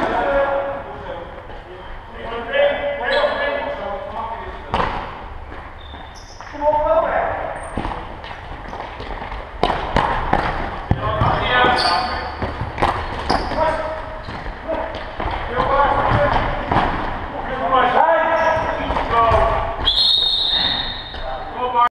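A ball thuds sharply as it is kicked.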